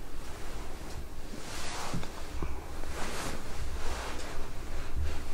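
A young man whispers close by.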